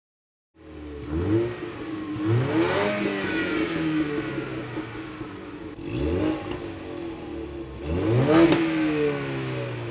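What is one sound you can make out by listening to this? A car engine revs sharply several times and falls back to idle.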